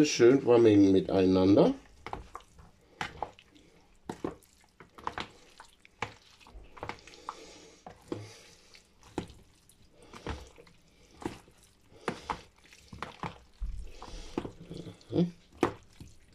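A spoon scrapes and clicks against a bowl while stirring a thick salad.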